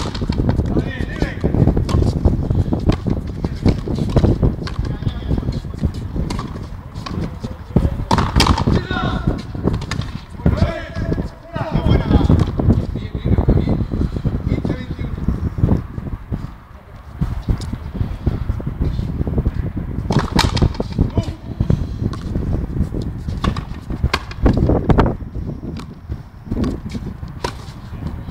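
A ball smacks against rackets and a wall again and again, echoing in a large hall.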